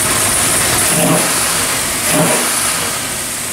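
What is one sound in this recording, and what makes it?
A powerful engine revs up sharply twice in quick succession.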